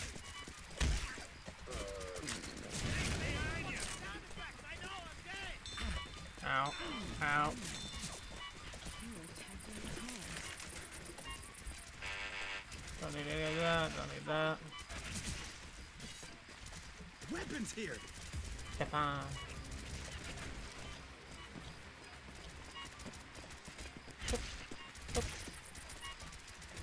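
A rifle fires short bursts of gunshots.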